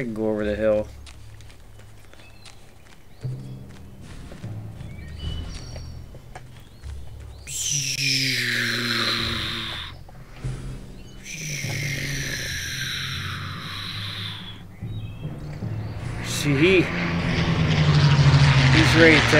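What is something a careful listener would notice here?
A man talks into a close microphone in a casual, animated way.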